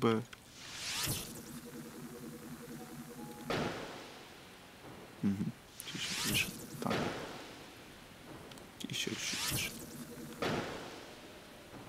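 Explosions burst loudly.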